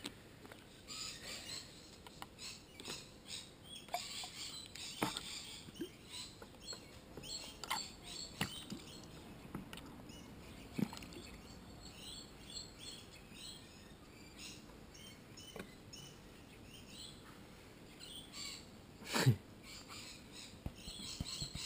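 Water sloshes and swirls in a plastic pan.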